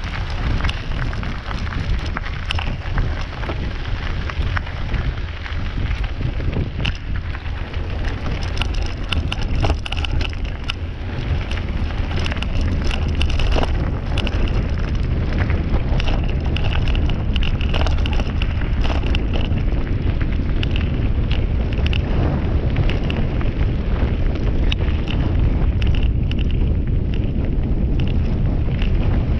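Wind rumbles across a microphone outdoors.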